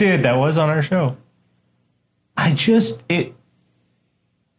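A man talks with animation over a microphone.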